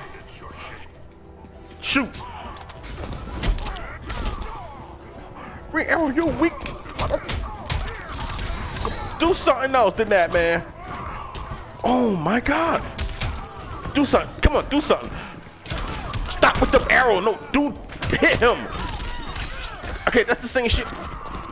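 Punches and kicks land with heavy thuds in a fight.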